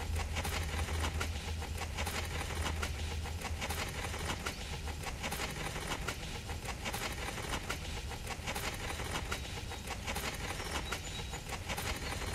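A small trowel smooths wet concrete.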